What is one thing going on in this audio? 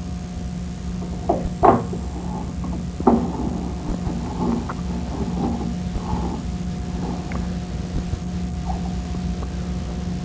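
Metal parts clink and knock together as they are handled.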